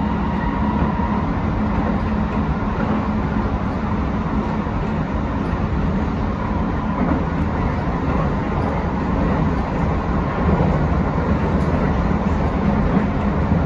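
A train's motor whines with a steady hum.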